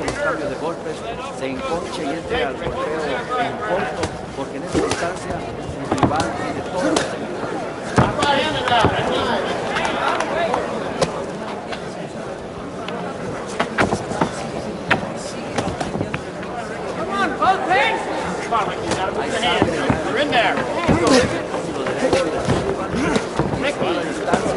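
A crowd cheers and murmurs in a large hall.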